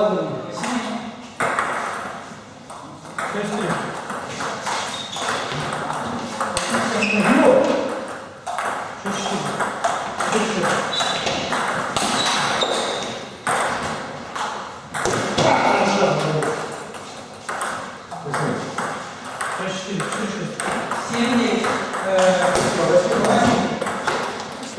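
A table tennis ball clicks back and forth between paddles and the table in a rapid rally.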